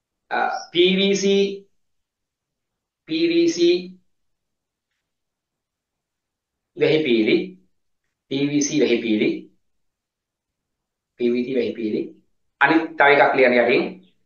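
A man speaks in short bursts with pauses, close to a microphone, explaining with animation.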